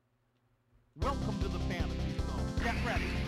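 Game music plays with sound effects.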